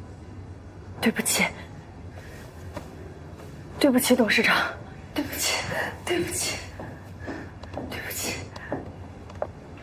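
A young woman speaks apologetically, close by.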